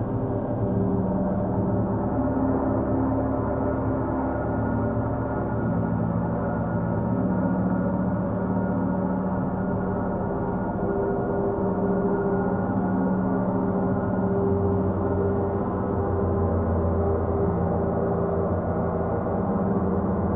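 Large gongs are struck softly and hum with a deep, swelling, sustained drone.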